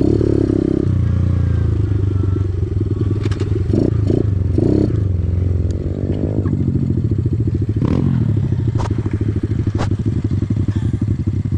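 A dirt bike engine idles and revs close by.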